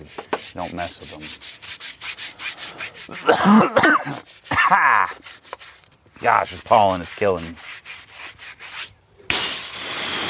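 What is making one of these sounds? A brush scrubs a car wheel.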